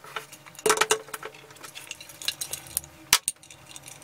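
A cloth rubs over a metal lamp.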